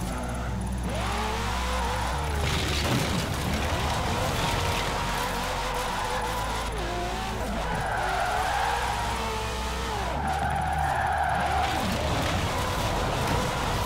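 A car engine revs loudly and changes pitch.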